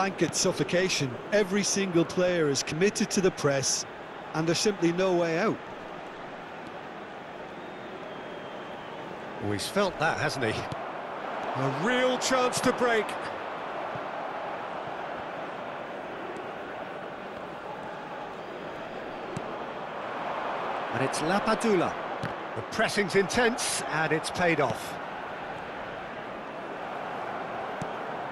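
A large stadium crowd murmurs and roars steadily.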